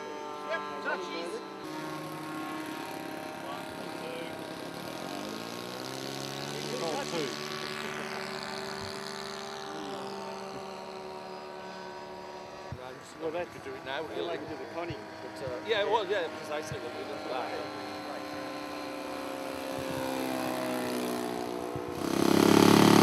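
A small model plane engine buzzes steadily, its pitch rising and falling as it flies past.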